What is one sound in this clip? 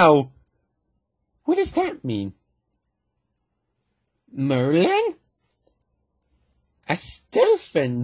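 A man speaks cheerfully and with animation, close by.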